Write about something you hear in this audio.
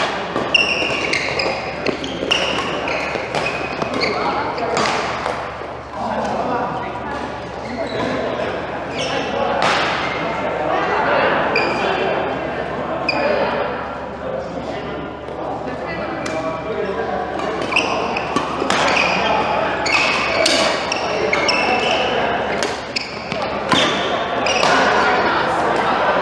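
Badminton rackets sharply smack a shuttlecock back and forth in a large echoing hall.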